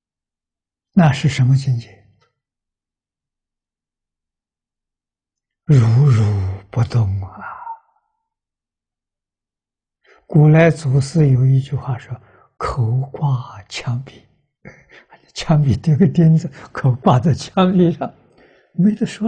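An elderly man speaks calmly and warmly into a microphone, with pauses.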